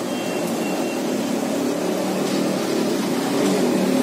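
A metal scoop scrapes and stirs in a pan of frying oil.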